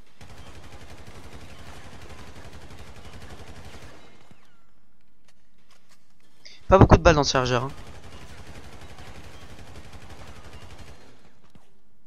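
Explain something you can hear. A rifle fires rapid bursts of shots indoors.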